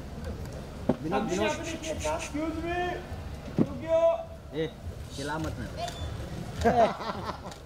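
A small group of young men and women chat nearby outdoors.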